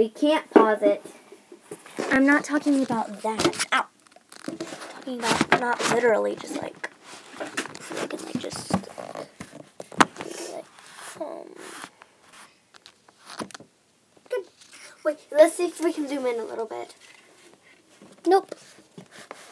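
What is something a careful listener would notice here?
A young girl talks nearby.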